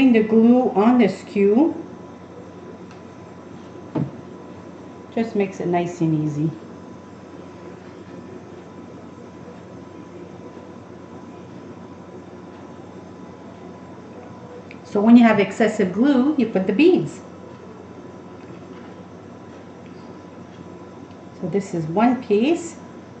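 A middle-aged woman talks calmly in short bursts, close to the microphone.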